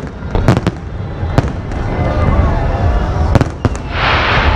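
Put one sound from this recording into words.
Fireworks boom and bang overhead.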